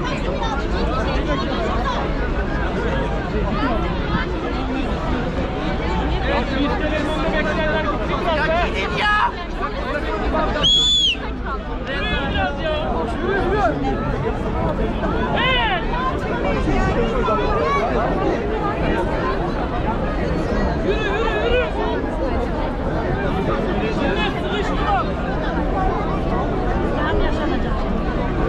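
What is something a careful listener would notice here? A large crowd chatters and murmurs all around, outdoors.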